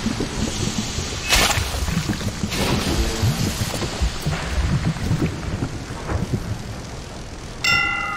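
Steam hisses loudly.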